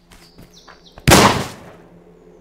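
A shotgun fires once with a loud boom.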